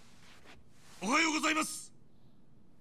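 A young man shouts a greeting loudly, close by.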